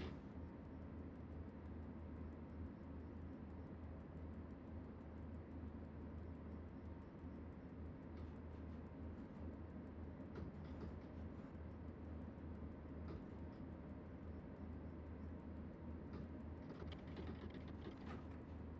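A train engine rumbles steadily while rolling along the rails.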